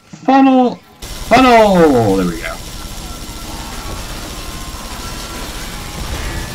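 A gun fires rapidly in a loud burst.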